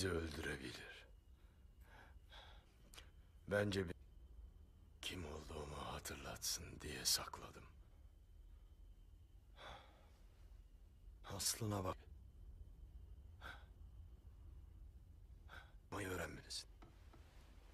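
A man speaks in a low, weary voice close by.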